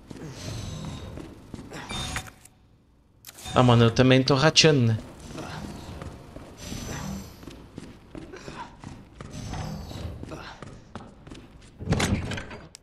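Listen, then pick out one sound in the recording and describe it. Footsteps walk steadily across a hard floor.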